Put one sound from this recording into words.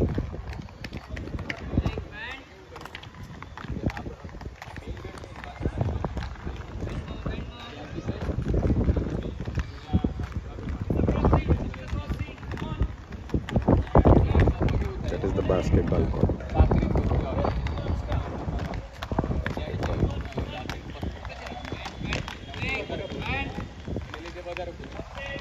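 Skate wheels roll and rumble on concrete.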